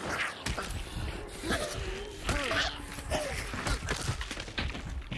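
A creature snarls and shrieks up close.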